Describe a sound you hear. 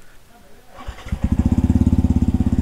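A motorbike engine starts and idles with a steady throb.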